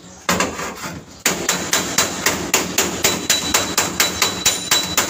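A hammer bangs rapidly and steadily on sheet metal.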